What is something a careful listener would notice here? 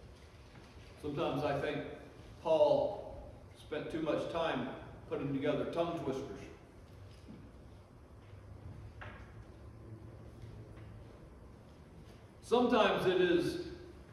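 An elderly man speaks slowly and deliberately through a microphone.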